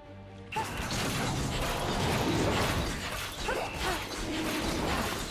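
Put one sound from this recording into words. Magic spells burst and crackle amid a busy game battle.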